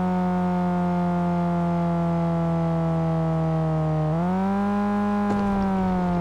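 A car engine hums steadily, dips slightly, then revs up sharply.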